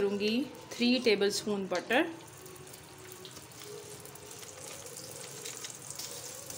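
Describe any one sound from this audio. Butter sizzles and crackles softly in a hot pan.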